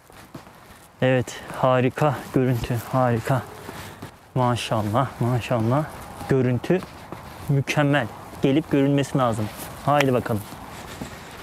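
A man speaks calmly and close to the microphone.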